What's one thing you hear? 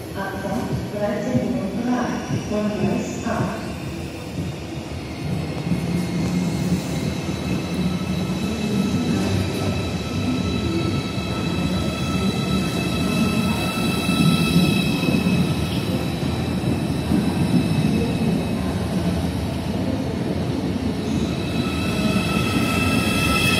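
An electric high-speed train pulls out of an echoing station hall with a rising electric whine.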